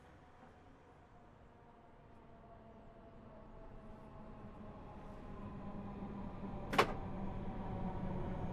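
A train engine hums and slowly grows louder.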